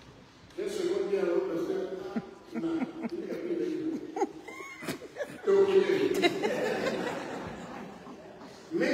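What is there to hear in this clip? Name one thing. An older man preaches with emphasis in a large, echoing hall.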